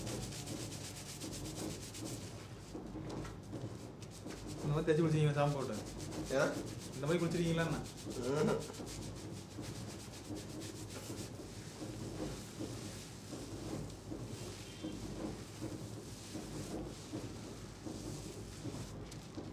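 Foamy lather squelches and squishes as hands scrub a head close by.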